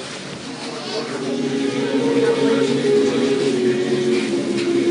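Men chant together in long, sustained tones.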